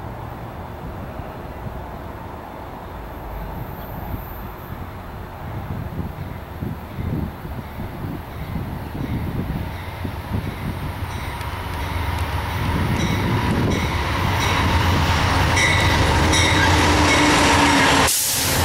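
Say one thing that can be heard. A diesel locomotive rumbles as it approaches and grows louder.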